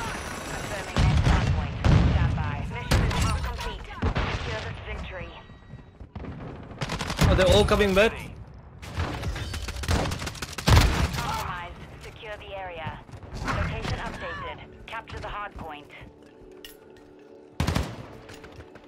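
Gunfire cracks in quick bursts.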